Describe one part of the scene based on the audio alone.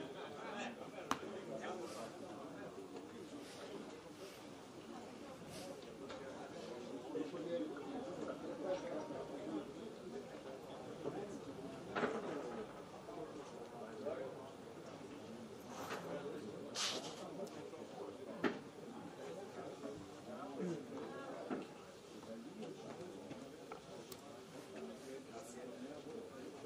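Spectators murmur and chat nearby outdoors.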